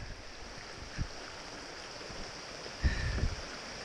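Footsteps crunch on a rocky trail.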